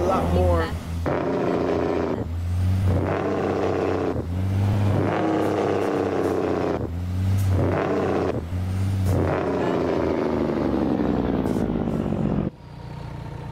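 A truck engine roars, rising in pitch and dropping with each gear change.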